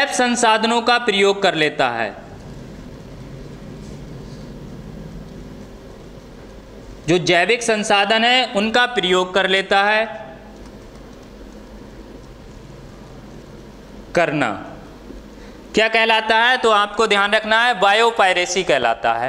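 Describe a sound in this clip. A man speaks calmly and clearly, as if teaching, close to a microphone, with pauses.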